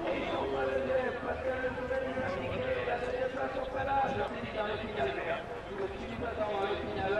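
Racing car engines roar and rev in the distance.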